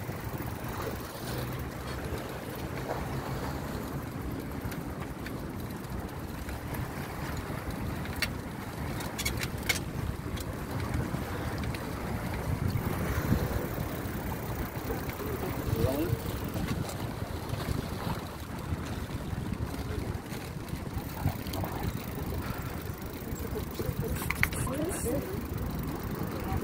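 Waves splash against rocks along the shore.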